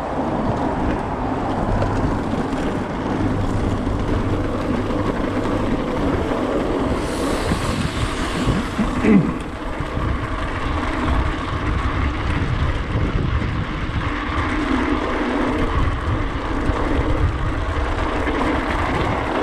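Bicycle tyres rumble over cobblestones.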